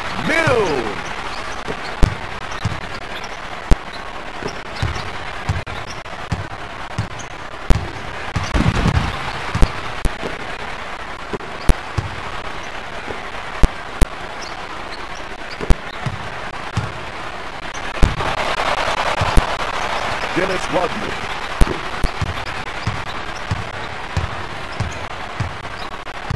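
A video game arena crowd cheers.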